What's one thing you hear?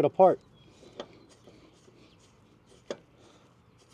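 Metal parts clink as a man handles a brake caliper.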